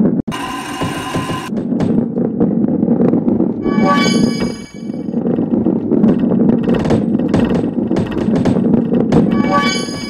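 Boxes clatter and knock as a ball smashes through them.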